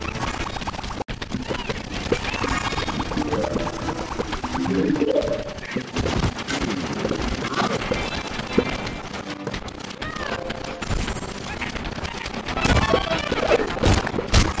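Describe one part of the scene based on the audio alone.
Game plants rapidly fire popping shots.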